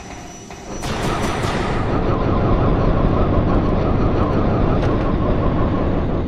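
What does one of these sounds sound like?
Footsteps clang quickly on a metal grating.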